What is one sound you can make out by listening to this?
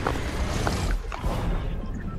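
A loud whoosh rushes past and fades.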